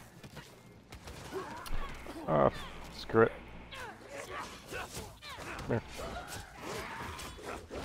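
Swords clash and strike in quick, sharp hits.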